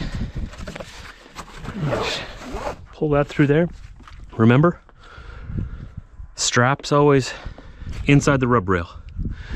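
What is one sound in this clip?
Gloved hands scrape and brush snow off a metal trailer deck.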